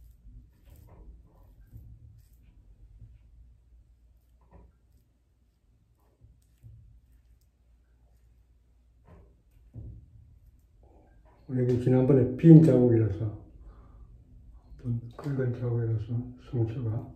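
A razor scrapes softly over stubble, close by.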